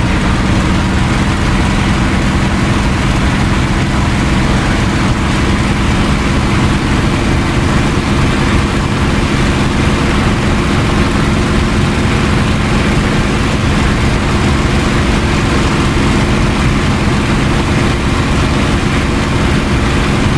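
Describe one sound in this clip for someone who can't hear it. Wind rushes past the cockpit canopy.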